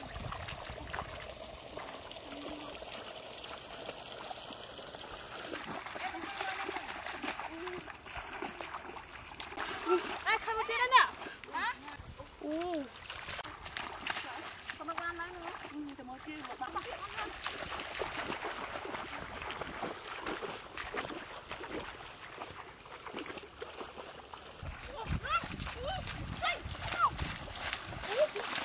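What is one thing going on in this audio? Feet splash through shallow muddy water.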